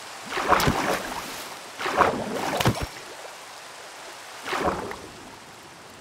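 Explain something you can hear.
Water splashes and bubbles in short bursts.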